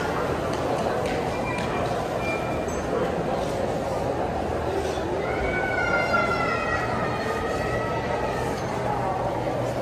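Footsteps shuffle on a hard floor close by.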